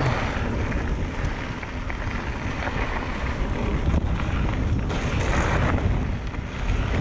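Bicycle tyres crunch and roll over a dirt trail.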